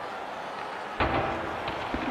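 A puck smacks hard against the boards.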